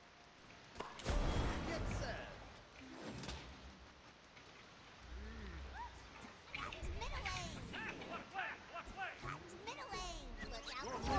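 Video game spell effects burst with magical blasts and impacts.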